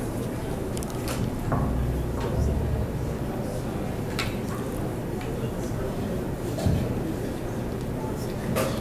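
An acoustic guitar is strummed through loudspeakers in a large room.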